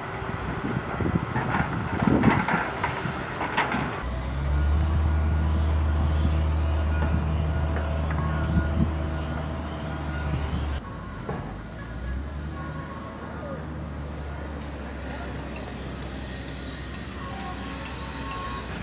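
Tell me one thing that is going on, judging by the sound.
Wind buffets outdoors.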